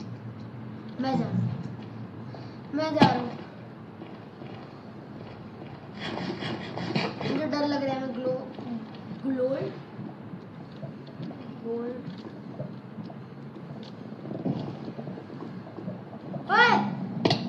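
A young boy talks with animation into a microphone, close by.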